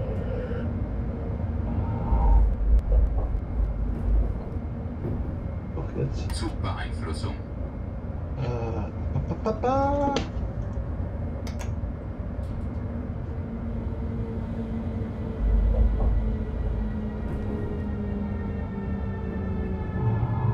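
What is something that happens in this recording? A train engine hums steadily as the train rolls along the tracks.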